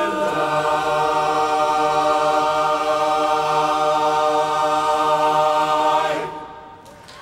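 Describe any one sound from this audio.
A men's choir sings a loud, sustained chord in close harmony.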